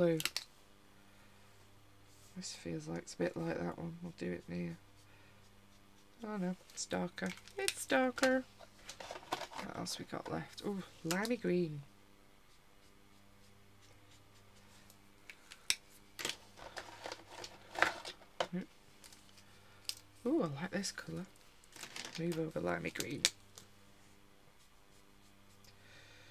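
A felt-tip marker squeaks and scratches across paper.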